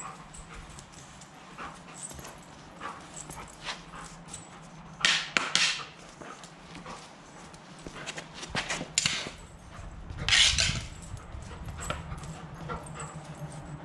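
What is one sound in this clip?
A dog's claws scrabble and skid on a concrete floor.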